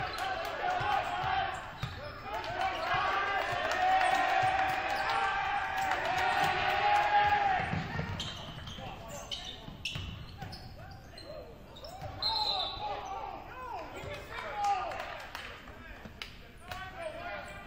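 Spectators cheer and shout in a large echoing gym.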